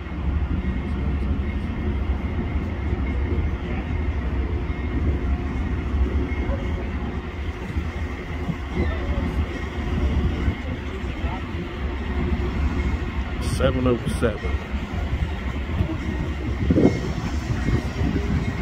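A diesel locomotive engine rumbles steadily as a train approaches.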